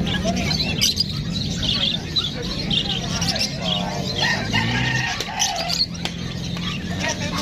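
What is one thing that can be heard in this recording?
Small parrots chirp and squawk close by, many at once.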